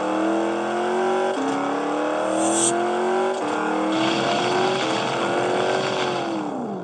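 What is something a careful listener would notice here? A racing car engine revs high and shifts up through the gears.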